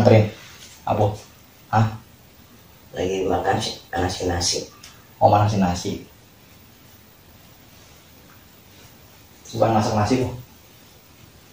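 An older man speaks in short, loud bursts close by.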